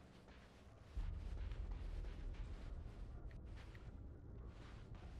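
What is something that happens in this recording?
Flames roar.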